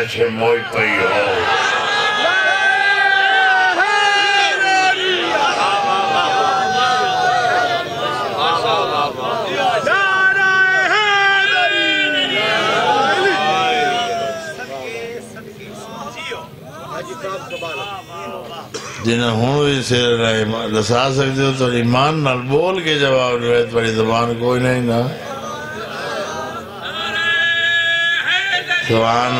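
A crowd of men chant along.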